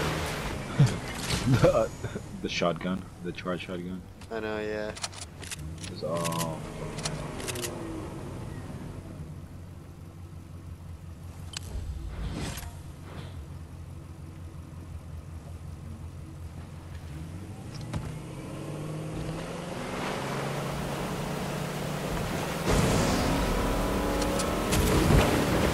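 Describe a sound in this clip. A motorboat engine hums steadily as the boat cruises over water.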